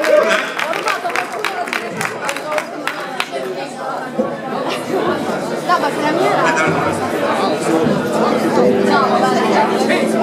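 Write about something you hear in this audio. Audience members chatter and call out nearby.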